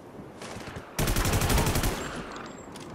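An assault rifle fires a rapid burst.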